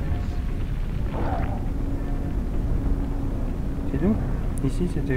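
A low rumbling drone fills a large echoing space.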